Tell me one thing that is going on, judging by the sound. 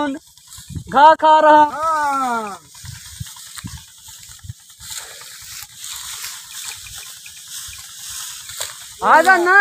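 A cow moos loudly nearby.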